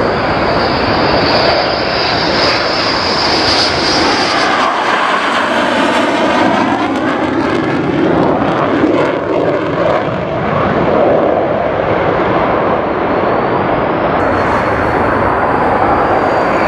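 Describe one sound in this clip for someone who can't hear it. A jet engine whines with a high, steady tone.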